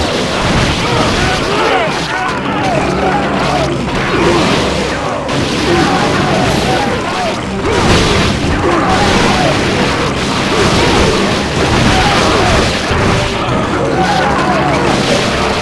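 Swords clash and clang repeatedly in a fierce fight.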